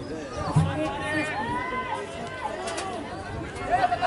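A crowd of spectators calls out from the stands.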